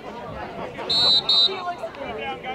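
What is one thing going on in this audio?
A referee's whistle blows one short, sharp blast.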